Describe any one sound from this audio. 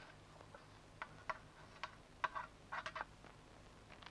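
A metal pan clatters and scrapes on a stove.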